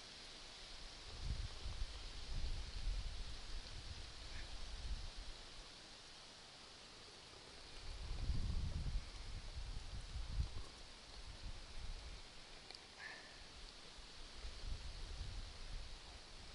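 Wind gusts rumble outdoors.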